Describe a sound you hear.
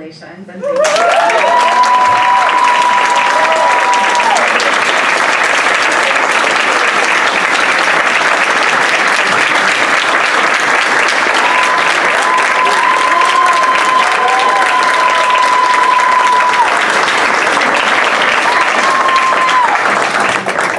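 A person whoops in a high voice amid the crowd.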